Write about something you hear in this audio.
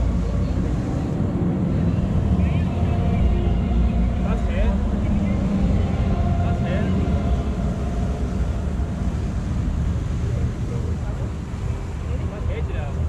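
A crowd of adult men and women chatter softly nearby outdoors.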